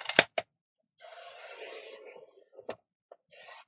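A paper trimmer blade slides along, cutting through card.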